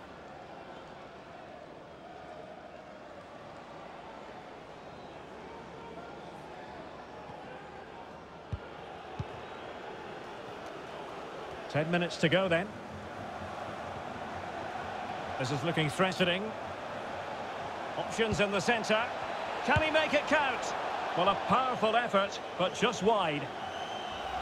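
A stadium crowd murmurs steadily and slowly grows louder.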